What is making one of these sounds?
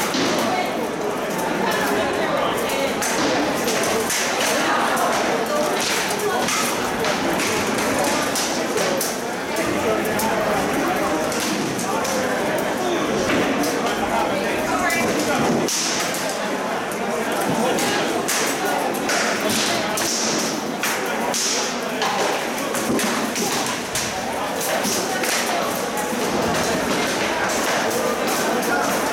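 Swords clash and knock against shields in a large echoing hall.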